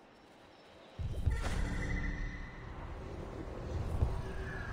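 Palm leaves rustle loudly as a bird lands among them.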